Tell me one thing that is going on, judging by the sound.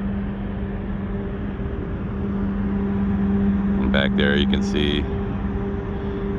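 A ship's engine hums steadily.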